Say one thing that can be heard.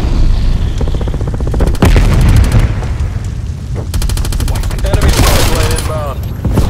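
An assault rifle fires rapid bursts.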